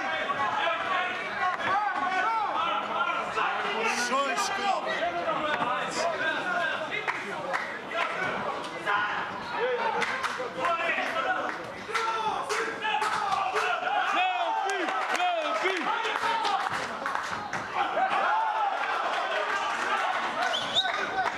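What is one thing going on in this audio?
A crowd of men and women talks and calls out loudly in an echoing hall.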